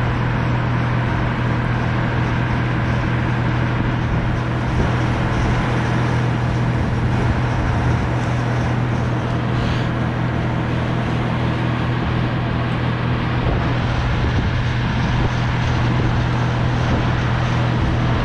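Wind rushes steadily past high up outdoors.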